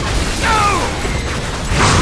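A video game helicopter's rotor whirs.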